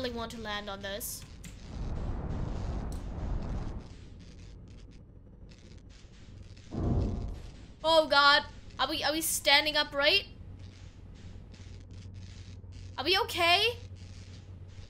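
A young woman speaks close into a headset microphone.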